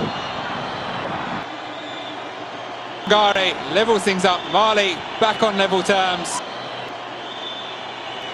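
A crowd murmurs steadily in a large open stadium.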